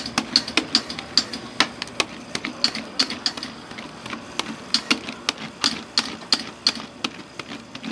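Metal spatulas scrape and tap rapidly against a cold metal pan.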